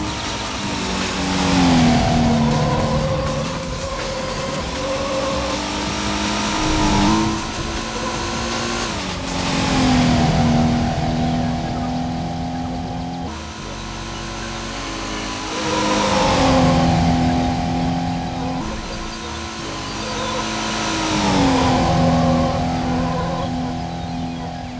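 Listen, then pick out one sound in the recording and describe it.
A car engine revs hard, its pitch climbing and then dropping again and again.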